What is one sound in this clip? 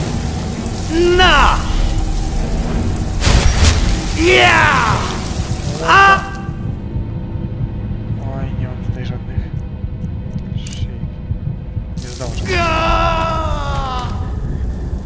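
A creature lets out shrill, wavering shrieks.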